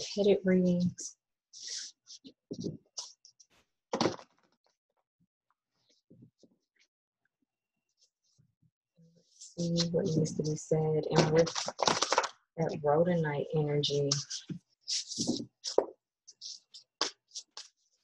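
Cards shuffle and tap on a table.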